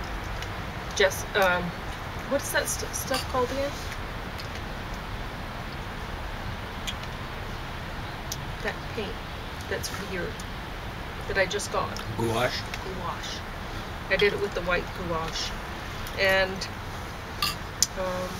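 An elderly woman reads aloud calmly nearby.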